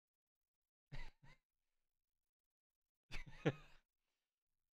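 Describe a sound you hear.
A young man chuckles softly into a microphone.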